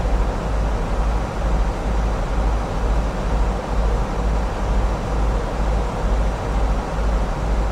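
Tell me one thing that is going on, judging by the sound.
Jet engines hum with a steady, low rumble.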